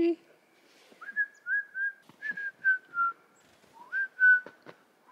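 A small bird chirps close by.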